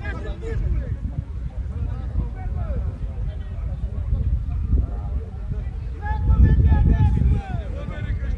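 Voices of a crowd of spectators carry from a distance outdoors.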